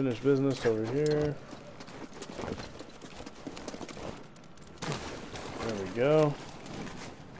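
A young man talks with animation close to a headset microphone.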